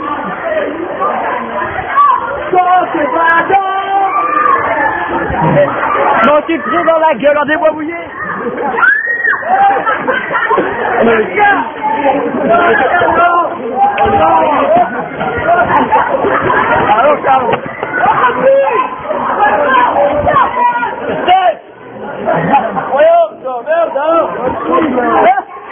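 A crowd of young people shouts and chants loudly close by.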